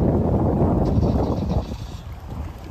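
Wind blows hard across the microphone.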